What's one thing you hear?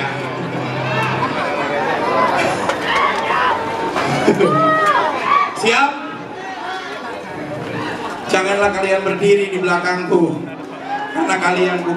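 A band plays with electric guitars and drums.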